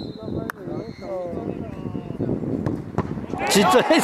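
A football is kicked with a thump.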